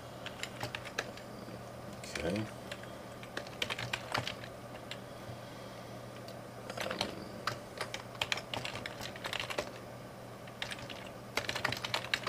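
Keys clack rapidly on a nearby computer keyboard.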